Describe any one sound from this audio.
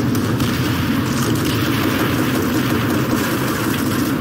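Tank engines rumble and clank nearby.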